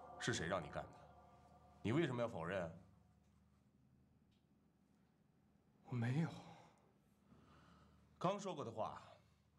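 A man questions sternly, close by.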